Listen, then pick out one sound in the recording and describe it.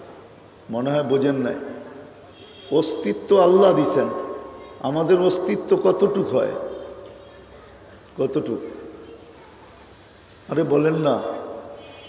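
An elderly man preaches with animation into a microphone, in bursts with echoing pauses.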